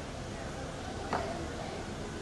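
A girl's feet thump on a wooden beam.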